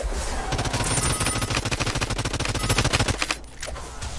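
A rapid-fire gun shoots in a fast, steady burst.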